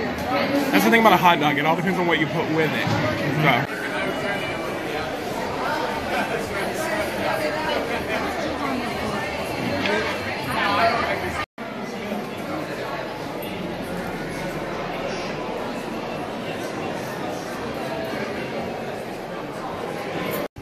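A large crowd chatters in a busy echoing hall.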